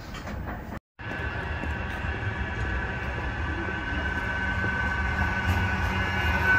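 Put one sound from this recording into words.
An approaching tram hums steadily as it draws near.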